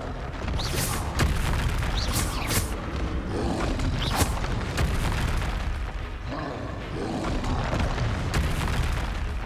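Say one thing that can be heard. Magic spells whoosh and crack in bursts.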